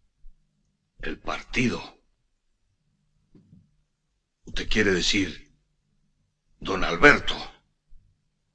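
Another middle-aged man answers in a calm, close voice.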